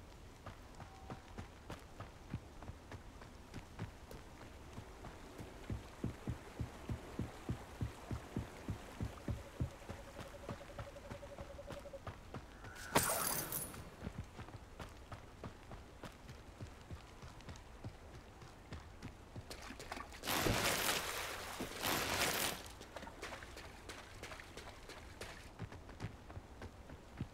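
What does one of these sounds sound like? Quick footsteps run over dirt and wooden boards.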